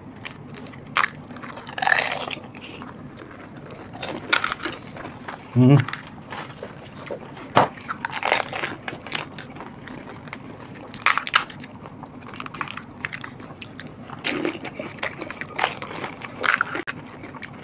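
Crisp shells crack and crunch as they are bitten.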